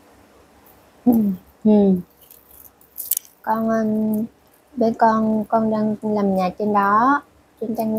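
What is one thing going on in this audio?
A woman speaks close by, in a lively, sing-song way.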